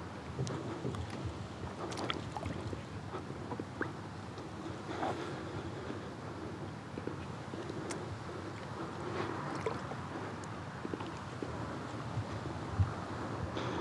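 A kayak paddle splashes and dips into the water in steady strokes.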